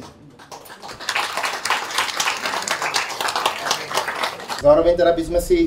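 An audience applauds outdoors.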